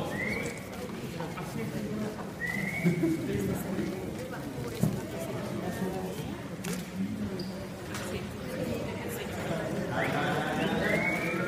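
A crowd of men and women murmurs and chatters indoors.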